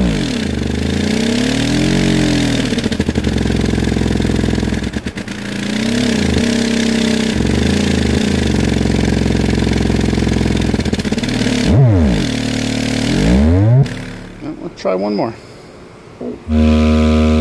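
A subwoofer plays loud, deep sweeping tones that rise and fall in pitch.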